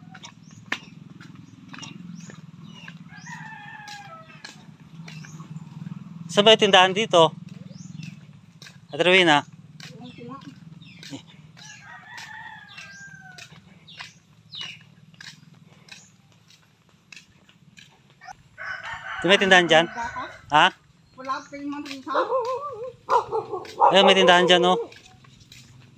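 A person walks barefoot on a dirt path.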